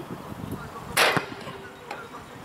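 A football strikes a metal goal crossbar with a ringing clang.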